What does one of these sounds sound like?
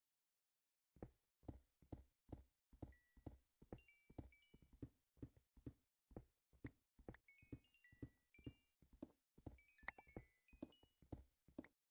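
A pickaxe chips rapidly at stone blocks.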